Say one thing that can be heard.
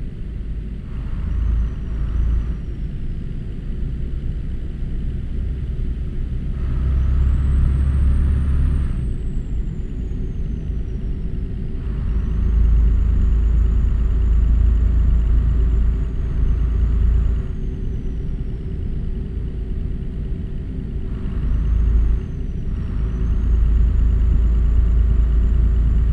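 A truck engine revs up and down as gears shift.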